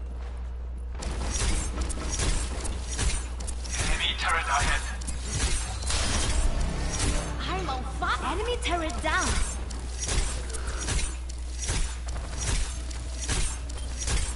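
A game blaster fires rapid bursts of shots.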